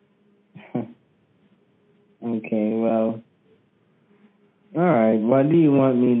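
An elderly woman talks over a phone line.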